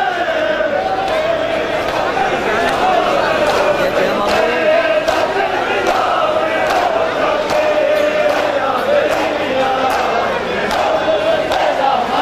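Men beat their chests in a steady rhythm.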